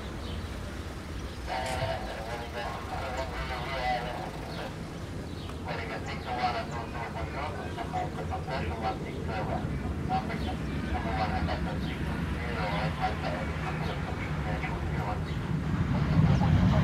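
A jet airliner roars steadily far overhead.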